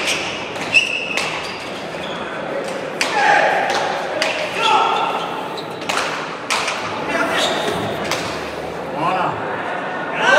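A ball smacks sharply against a wall, echoing in a large hall.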